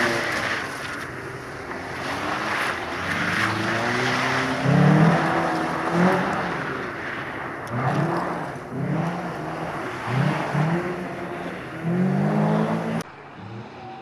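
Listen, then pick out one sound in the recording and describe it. Tyres hiss and splash on a wet, gritty surface.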